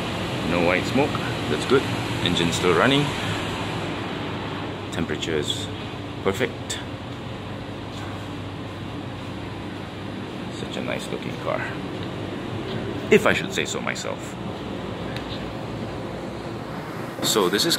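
A car engine idles steadily nearby.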